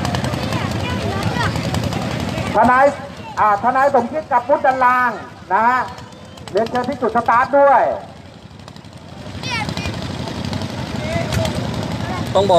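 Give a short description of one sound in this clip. A crowd chatters and calls outdoors.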